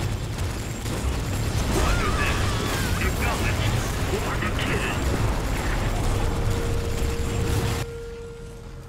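Flames roar and hiss in loud bursts.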